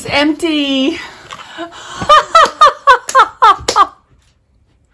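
A middle-aged woman laughs loudly.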